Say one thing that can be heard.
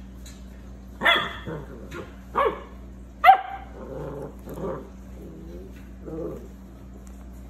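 Puppies whimper and squeak softly.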